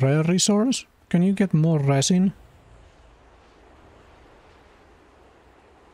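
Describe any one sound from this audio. Footsteps tread softly on sand.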